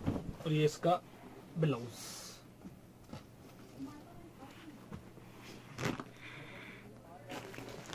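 Fabric rustles as it is unfolded and handled.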